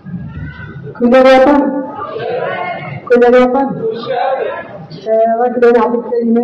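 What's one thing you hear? A young woman sings loudly through a microphone and loudspeakers.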